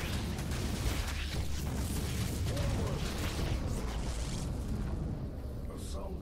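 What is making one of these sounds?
Swarming creatures screech and clatter in a noisy battle.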